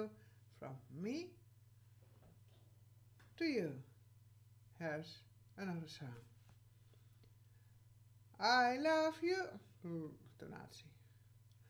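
A woman speaks in short, expressive bursts close to a microphone, with pauses between.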